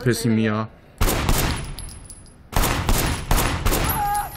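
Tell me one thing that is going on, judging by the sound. Gunshots fire loudly and echo through a large hall.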